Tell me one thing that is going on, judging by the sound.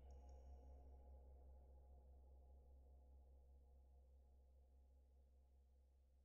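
Water rushes steadily over a weir.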